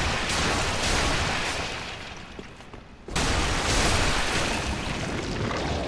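A heavy blade clangs against armour.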